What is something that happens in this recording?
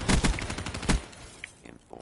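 Gunshots crack in a quick burst.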